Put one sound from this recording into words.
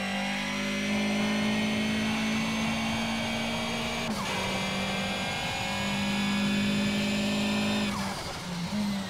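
A racing car engine roars at high revs, dropping briefly as gears shift.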